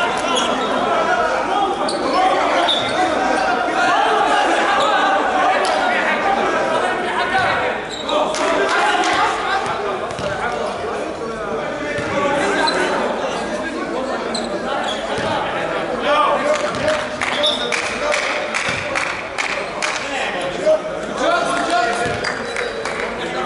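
Sneakers squeak on a hard court floor.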